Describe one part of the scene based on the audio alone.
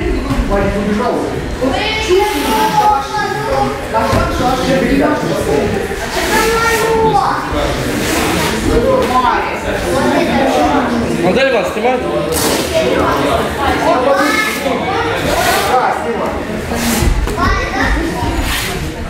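A young boy talks close by.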